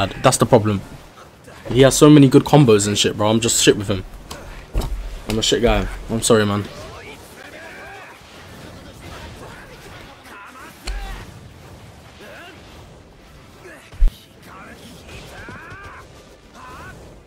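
Punches and blasts land with sharp impacts.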